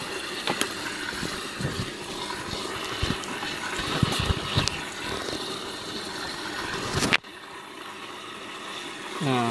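Water bubbles and splashes in a tank.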